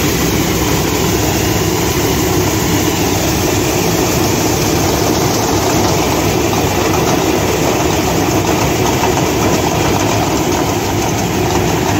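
Grain pours with a steady hiss into a heap.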